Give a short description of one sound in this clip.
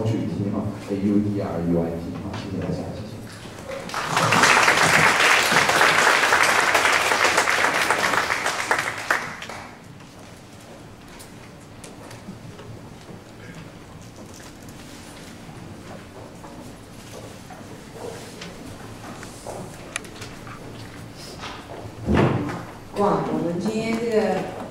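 A woman speaks through a loudspeaker in a large echoing hall.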